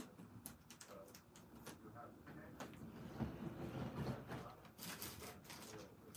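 Plastic snack packets rustle as hands arrange them in a basket.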